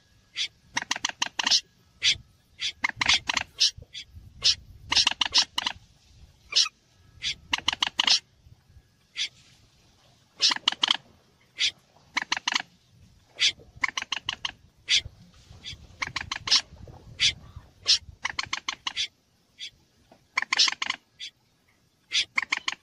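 A water bird calls in quick, repeated bursts of sharp clicking notes.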